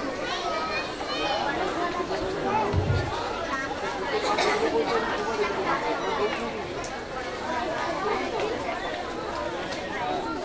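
A large crowd of girls chatters all around.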